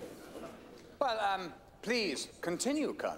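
An older man speaks loudly and forcefully to a crowd.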